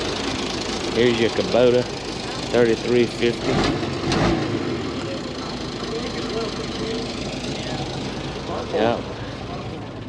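A man talks casually nearby, outdoors.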